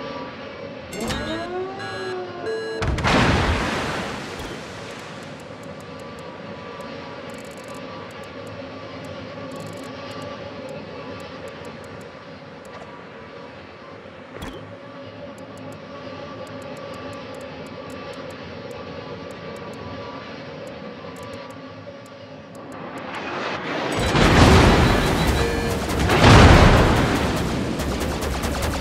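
Waves wash steadily around a ship at sea.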